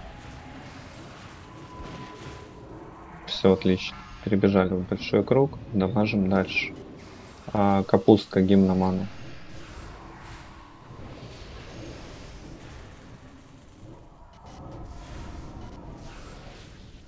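Magic spell effects hum and whoosh in a video game battle.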